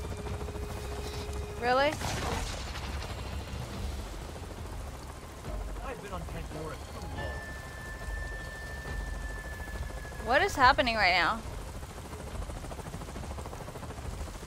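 A helicopter's rotors thud in the distance.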